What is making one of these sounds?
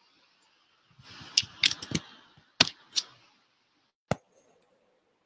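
Knocks and rustles come from a microphone being handled up close.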